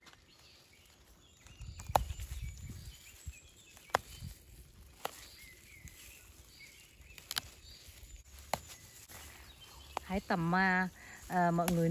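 Leaves rustle and brush against a gloved hand.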